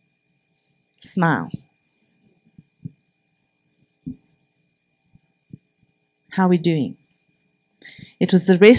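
A woman speaks into a microphone with long pauses.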